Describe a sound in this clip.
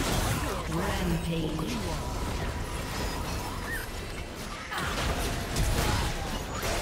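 Spells and attacks burst and clash in a game battle.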